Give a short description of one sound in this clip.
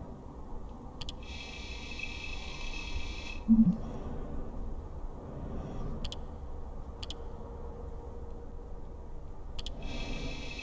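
A mouse button clicks sharply a few times.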